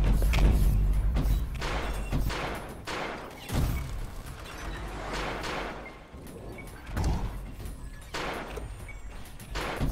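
A racing car engine roars and whooshes past in a video game.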